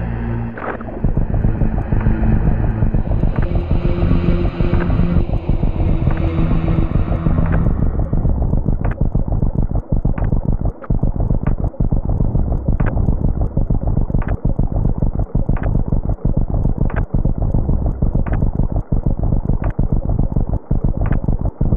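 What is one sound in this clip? A video game monster roars and rumbles loudly as it sinks.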